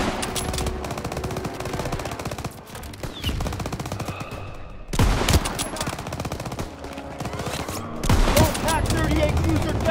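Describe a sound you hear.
Gunfire crackles rapidly in the distance.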